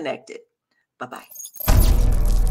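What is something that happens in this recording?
A woman speaks briefly, close to a microphone.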